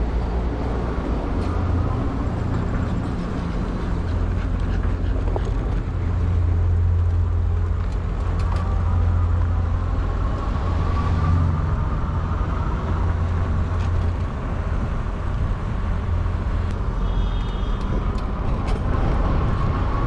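Wind rumbles steadily over the microphone outdoors.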